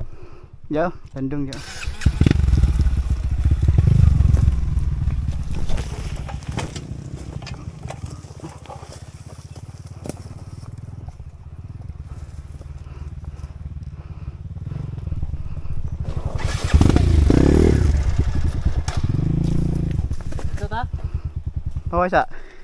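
A second dirt bike engine revs ahead on the trail.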